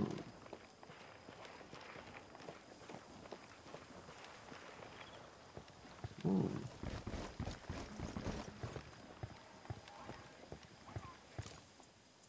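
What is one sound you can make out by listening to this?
Footsteps crunch over dry ground and grass.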